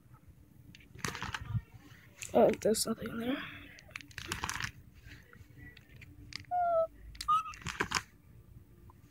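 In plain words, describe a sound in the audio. Plastic binder pages rustle and crinkle as they are turned.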